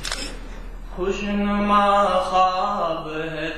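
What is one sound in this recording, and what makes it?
A young man speaks loudly into a microphone over a loudspeaker in a large echoing hall.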